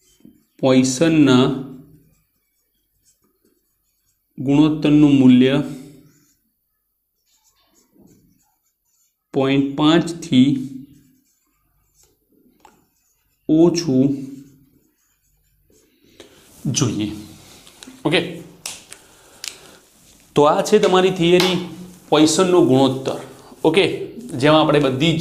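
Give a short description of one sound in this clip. A man speaks calmly and clearly, close by, in short phrases with pauses.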